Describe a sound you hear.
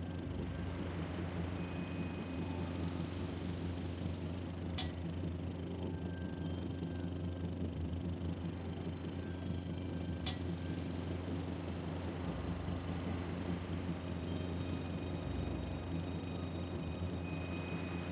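A ship's engine rumbles low and steady.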